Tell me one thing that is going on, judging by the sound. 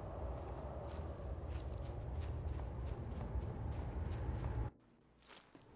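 Footsteps crunch on snow and ice.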